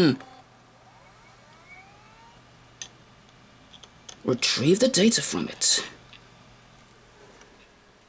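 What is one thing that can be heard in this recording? A hard drive whirs with a faint, steady hum.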